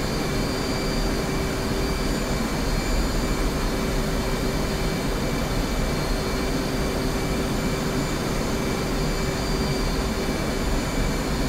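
An aircraft engine drones steadily inside the cockpit with a faint whine.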